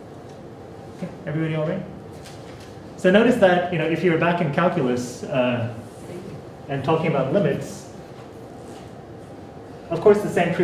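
A man lectures, pausing between phrases.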